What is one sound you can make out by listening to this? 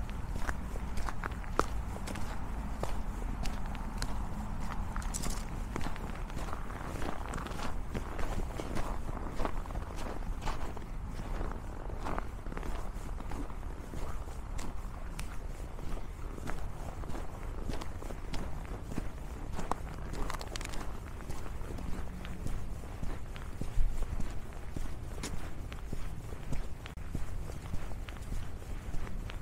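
Footsteps crunch on icy snow at a steady walking pace.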